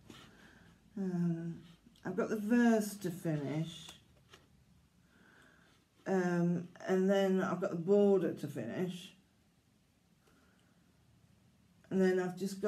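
A woman speaks calmly close by, pausing between phrases.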